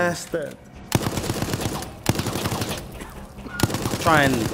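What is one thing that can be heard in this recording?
A machine gun rattles in quick bursts.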